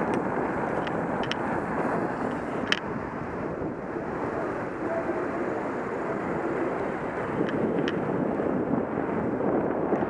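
Wind rushes steadily past a moving bicycle.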